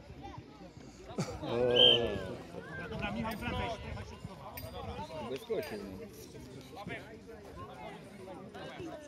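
Young children shout and call out to each other across an open field outdoors.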